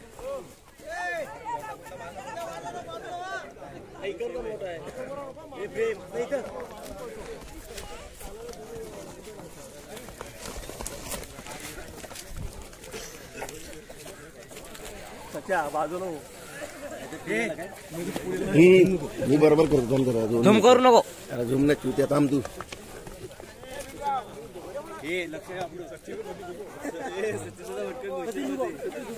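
Buffalo horns knock together as the animals clash.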